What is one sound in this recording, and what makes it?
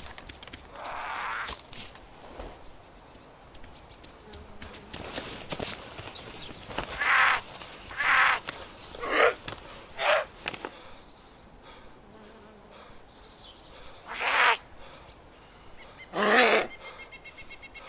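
Leaves and branches rustle as someone pushes through dense bushes.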